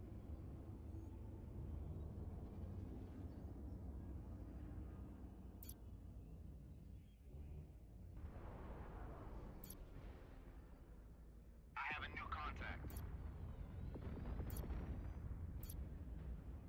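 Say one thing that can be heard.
A spaceship engine rumbles low and steadily.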